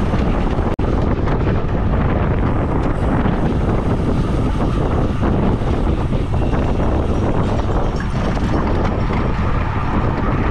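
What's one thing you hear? Wind rushes loudly past a moving bicycle rider.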